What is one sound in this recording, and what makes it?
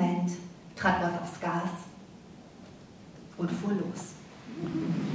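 A young woman reads aloud into a microphone.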